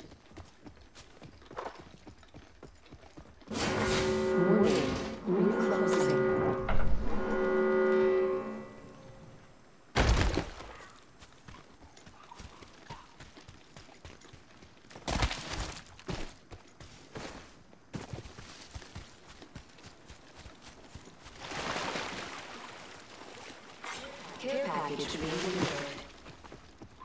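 Footsteps patter quickly over wooden boards and grass.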